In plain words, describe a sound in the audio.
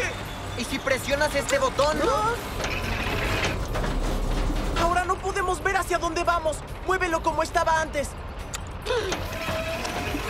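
A boy speaks with alarm.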